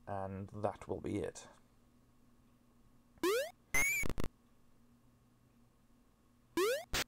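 A retro video game plays buzzing electronic tones and quick rising bleeps.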